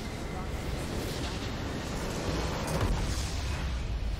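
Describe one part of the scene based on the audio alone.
A deep video game explosion booms.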